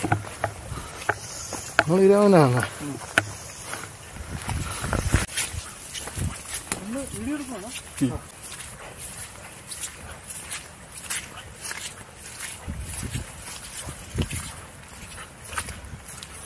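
Footsteps squelch and crunch on a wet, muddy path.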